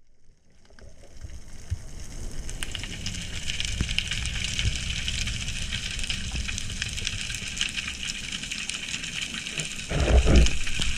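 Water rushes and crackles softly around a diver gliding down underwater.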